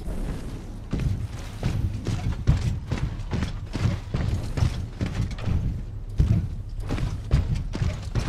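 Heavy metal footsteps thud in a steady rhythm.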